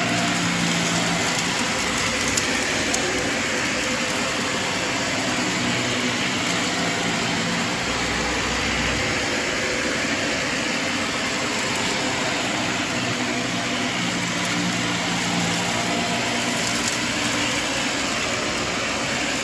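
Vacuum cleaner brush rolls over carpet with a soft rustle.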